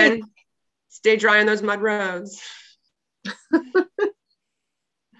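A younger woman speaks and laughs over an online call.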